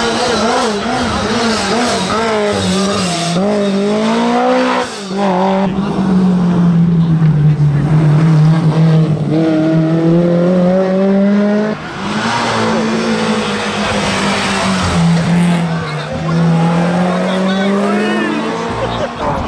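Racing car engines roar loudly, revving up and down as they pass one after another.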